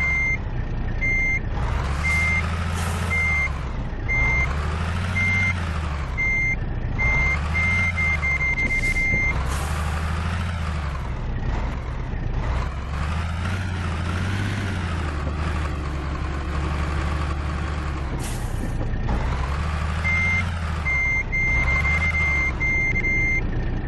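A reversing alarm beeps steadily.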